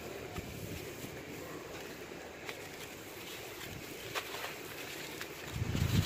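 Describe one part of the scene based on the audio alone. Dry soil crumbles and trickles down in clumps.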